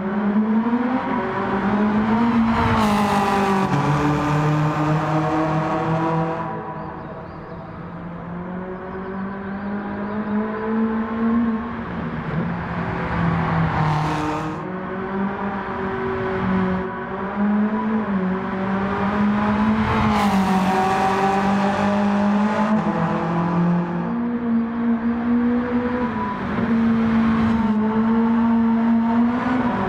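A car engine revs high and loud, rising and falling through the gears.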